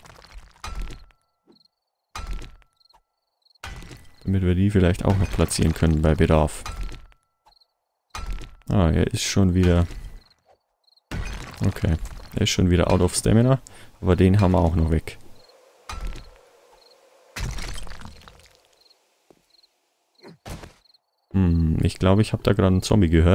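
A pickaxe strikes wood with repeated dull thuds.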